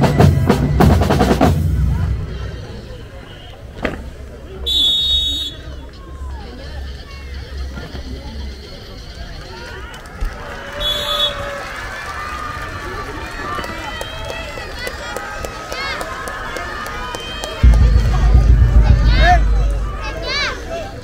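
A marching drum band plays loud drumbeats outdoors.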